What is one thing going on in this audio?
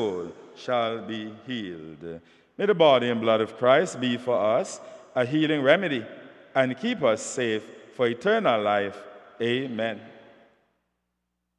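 A man speaks or chants slowly through a microphone in a reverberant hall.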